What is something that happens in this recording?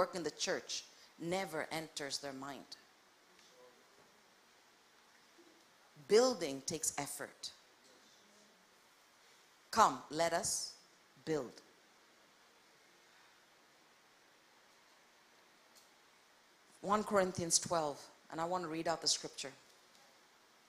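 A woman speaks calmly through a microphone, with long pauses.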